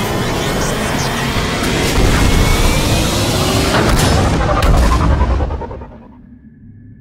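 A shuttle's engines roar loudly as it lifts off and fades away.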